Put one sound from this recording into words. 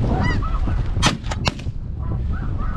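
A shotgun fires several quick shots.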